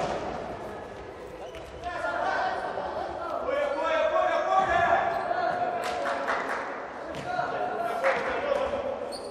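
A ball thuds off players' feet in an echoing indoor hall.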